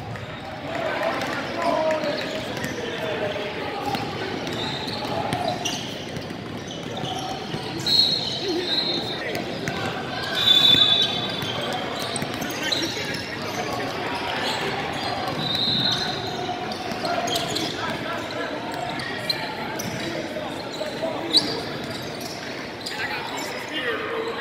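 Young people chatter and call out in a large echoing hall.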